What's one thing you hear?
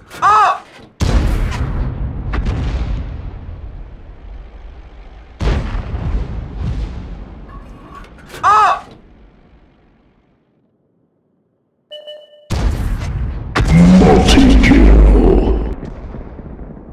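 A tank cannon fires with a loud, booming blast that rumbles away.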